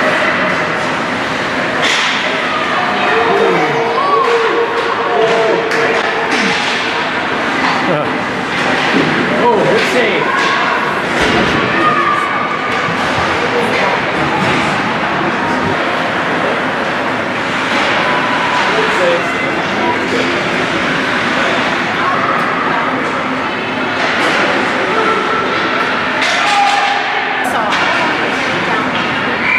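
Skate blades scrape across ice.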